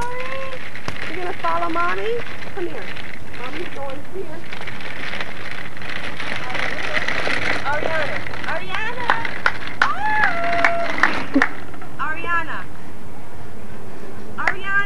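A woman calls out in a high, coaxing voice from a short distance outdoors.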